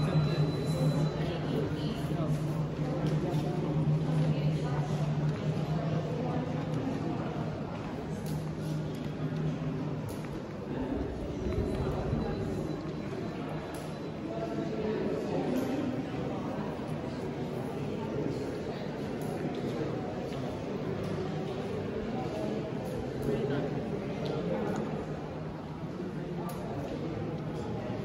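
Many people chatter indistinctly in a large echoing hall.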